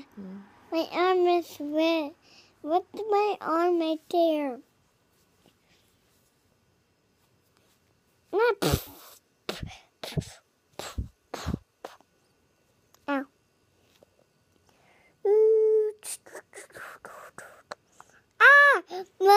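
A small child sings and babbles close by in a high voice.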